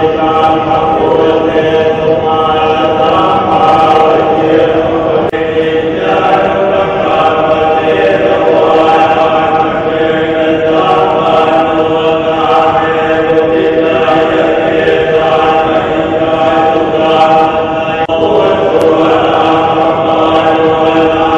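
A group of men chant together in a steady, droning unison in a large echoing hall.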